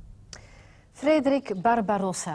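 A woman speaks clearly and expressively, close by.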